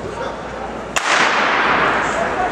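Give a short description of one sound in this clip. A starting pistol fires with a sharp crack that echoes through a large hall.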